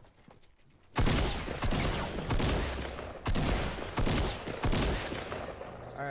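Gunshots fire in loud, repeated bursts.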